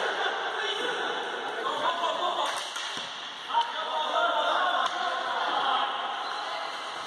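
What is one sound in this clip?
A crowd of spectators murmurs and calls out in an echoing hall.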